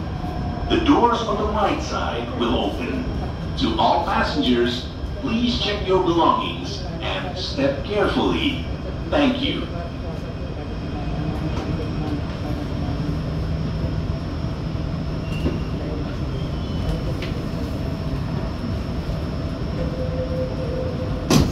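A train rumbles and hums steadily as it rolls slowly along.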